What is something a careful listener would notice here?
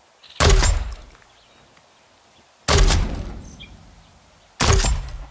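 A heavy gun fires single loud booming shots that echo away.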